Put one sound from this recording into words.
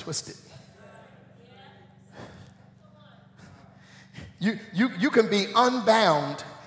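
A man speaks through a microphone, quietly at first and then loudly and with animation.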